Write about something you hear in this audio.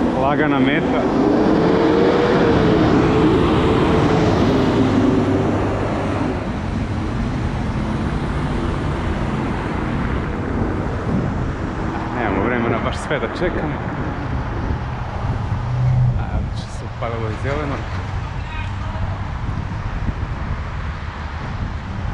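Cars drive by on the road.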